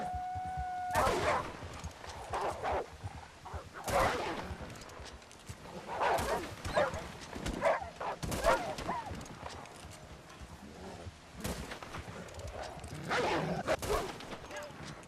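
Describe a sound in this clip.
A rifle fires several shots.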